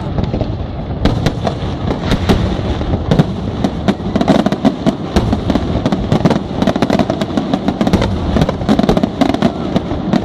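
Fireworks crackle and fizz in rapid bursts.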